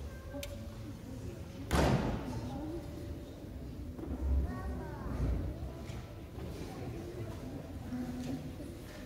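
A guitar ensemble plays softly in an echoing hall.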